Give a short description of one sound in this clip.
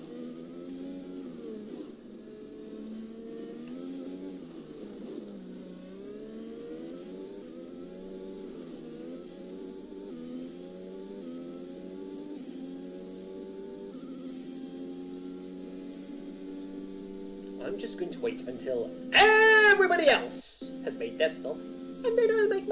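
A Formula One car engine in a racing game revs up through the gears.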